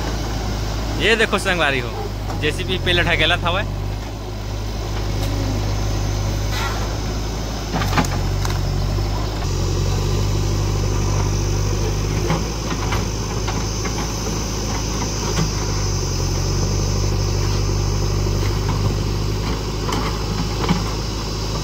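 An excavator bucket scrapes and digs into soil.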